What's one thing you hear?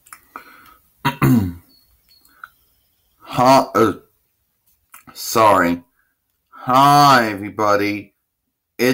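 A young man speaks close to a microphone in a high, playful voice.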